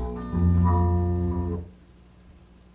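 Loud electronic synthesizer chords play, then stop abruptly.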